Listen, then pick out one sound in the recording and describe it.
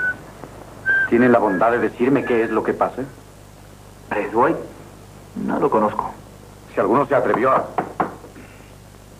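A man speaks in a firm, low voice nearby.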